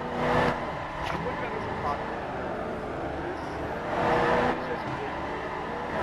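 A van engine hums steadily as it drives along.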